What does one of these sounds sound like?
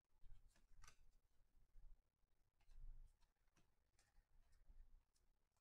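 Cards slide and flick against each other as a stack is shuffled through by hand.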